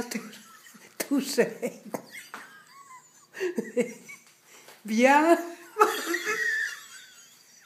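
An elderly woman laughs heartily close by.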